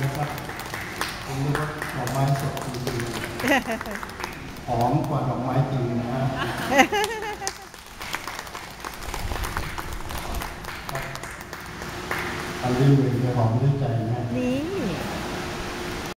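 An elderly man sings through a microphone on stage.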